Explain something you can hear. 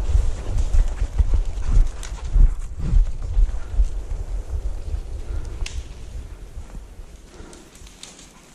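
Footsteps crunch through dry leaves.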